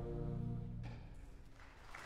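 An orchestra holds a final chord that fades out.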